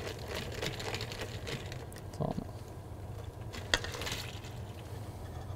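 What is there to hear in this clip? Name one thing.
A whisk scrapes and clinks against a metal bowl.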